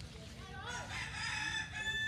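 A football is kicked on grass.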